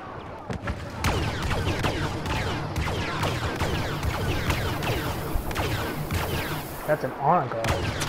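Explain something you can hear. Blaster guns fire in rapid, echoing bursts.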